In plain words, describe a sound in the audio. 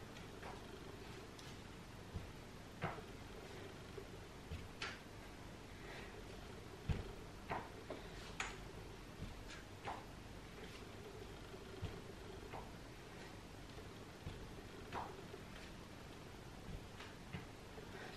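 A woman breathes hard with effort.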